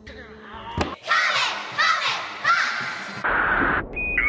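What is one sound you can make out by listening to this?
A group of young women shout a cheer together.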